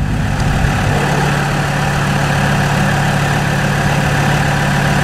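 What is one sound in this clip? An engine idles steadily.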